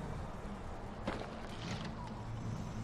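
A wooden bow creaks as its string is drawn back.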